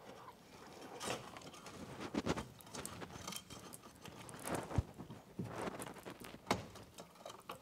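Small clicks and taps come from a metal frame.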